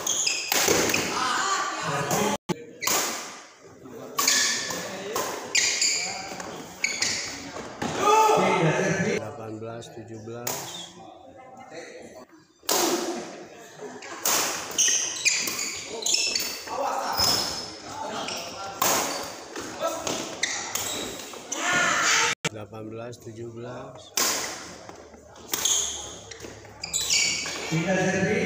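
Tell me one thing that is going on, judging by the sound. Rackets strike a shuttlecock with sharp, repeated pops in an echoing hall.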